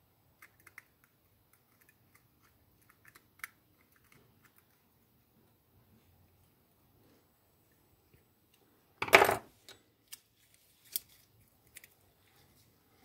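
Small metal parts click and tap together as a fishing reel is taken apart.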